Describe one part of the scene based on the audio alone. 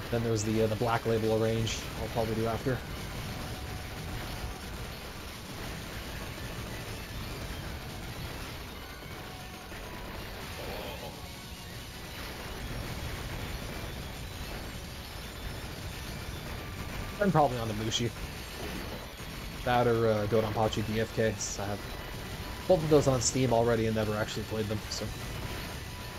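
Explosions rumble and crackle in an arcade shooting game.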